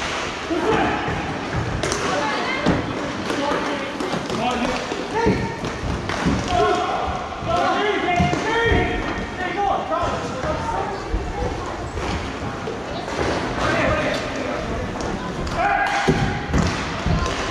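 Players shout and call out across a large echoing rink.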